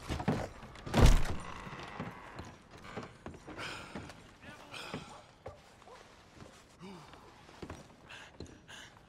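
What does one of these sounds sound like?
Boots thud on wooden floorboards indoors.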